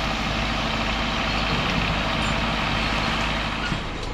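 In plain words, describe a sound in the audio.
A log drags and scrapes over the forest floor.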